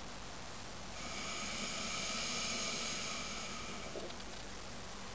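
A water pipe bubbles softly.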